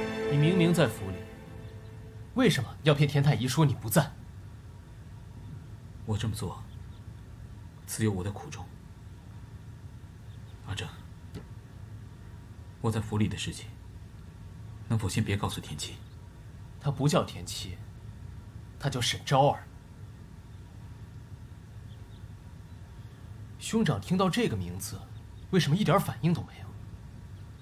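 A young man speaks with a tense, questioning tone.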